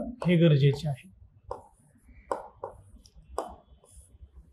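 A marker taps and scratches on a board.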